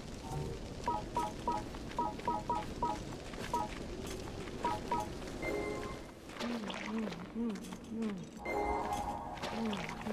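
A sword swishes through the air in a game.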